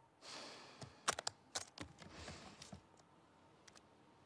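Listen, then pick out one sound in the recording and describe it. Latches on a guitar case click open.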